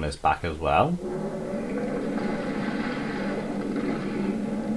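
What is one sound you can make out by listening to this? A burst of flame roars steadily.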